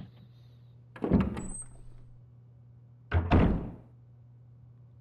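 A door thuds shut.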